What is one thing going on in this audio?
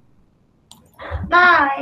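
Children shout together over an online call.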